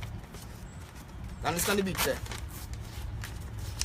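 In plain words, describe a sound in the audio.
Paper banknotes rustle as they are flicked through.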